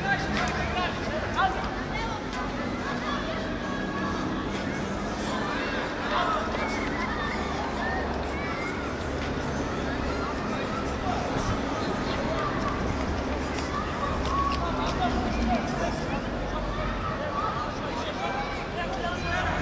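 Young men shout to one another across an open field outdoors.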